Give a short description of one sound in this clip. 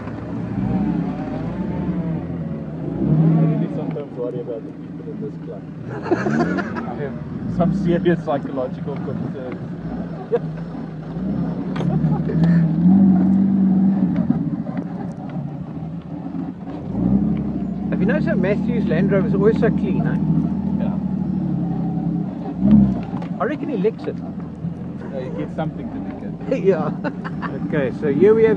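An off-road vehicle's engine hums and revs steadily as it drives over sand.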